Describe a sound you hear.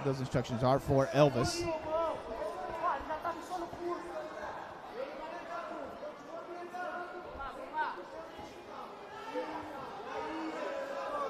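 A crowd shouts and cheers in a large arena.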